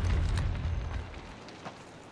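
A smoke canister hisses loudly.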